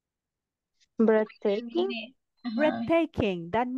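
A woman speaks clearly through an online call.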